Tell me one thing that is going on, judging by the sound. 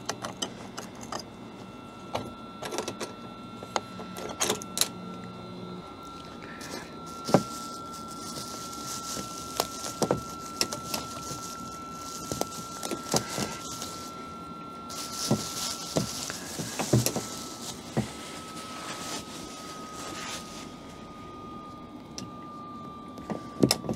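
A metal padlock clicks and rattles against a latch.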